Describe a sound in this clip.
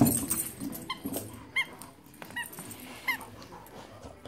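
A dog's rubber toy squeaks in short bursts.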